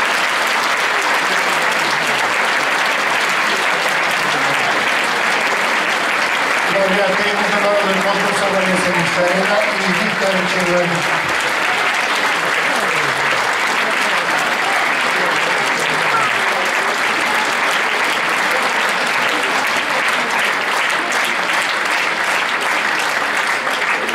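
Many people applaud loudly and steadily in a large hall.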